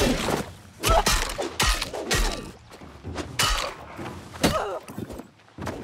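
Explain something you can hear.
Magic blasts crackle and burst in quick strikes.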